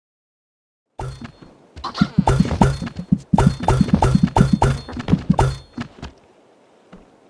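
Coins clink and jingle as they drop.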